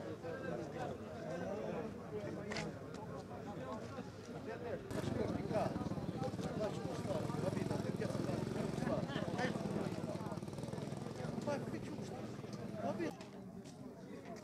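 A large crowd of men talks and murmurs loudly outdoors.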